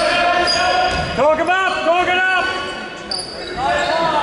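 Sneakers squeak sharply on a wooden court in a large echoing hall.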